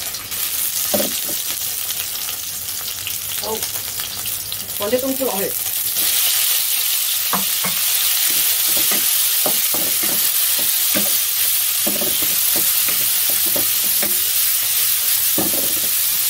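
Oil sizzles and crackles in a hot pan, growing louder partway through.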